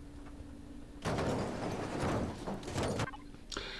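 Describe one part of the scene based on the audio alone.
A capsule crashes into the ground with a heavy rumble.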